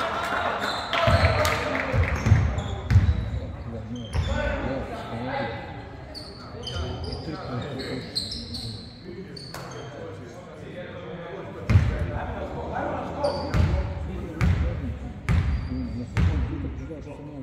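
A basketball bounces with hollow thuds.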